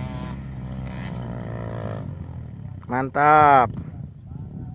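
Motorbike engines rev and whine.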